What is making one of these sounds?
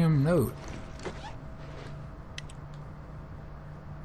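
A sheet of paper rustles as it is unfolded.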